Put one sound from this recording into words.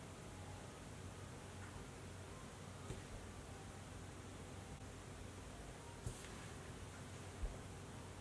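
A makeup brush brushes softly against skin, close by.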